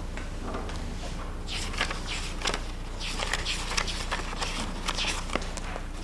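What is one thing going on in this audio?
Paper rustles as pages are shuffled.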